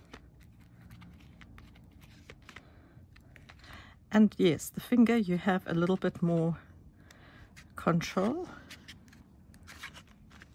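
Paper rustles softly as hands press and rub it.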